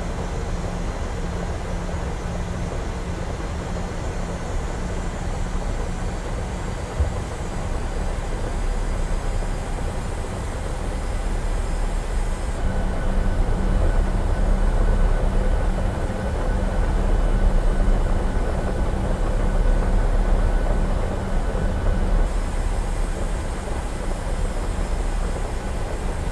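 Jet engines hum steadily while an airliner taxis.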